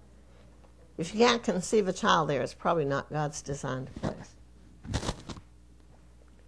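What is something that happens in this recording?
An elderly woman speaks with animation into a microphone.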